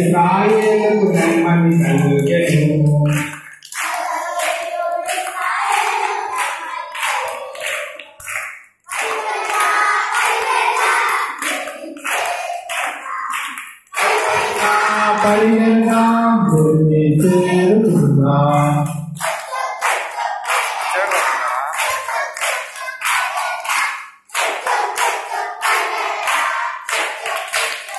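A group of young children sing together loudly nearby.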